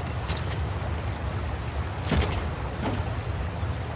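A heavy metal crate lid clanks open.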